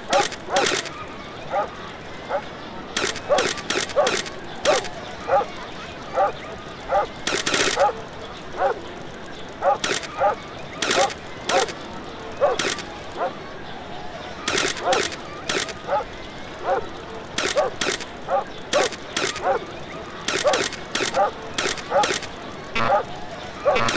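Small dogs yap in short, quick barks again and again.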